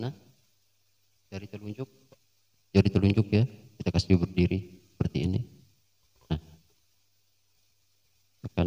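An acoustic guitar is plucked in short bursts of notes.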